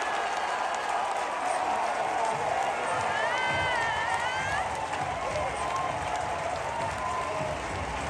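Fans clap their hands.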